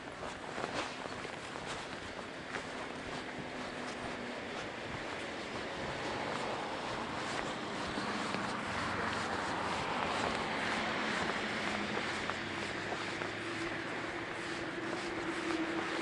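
Bicycle tyres hum and rattle on a paved path.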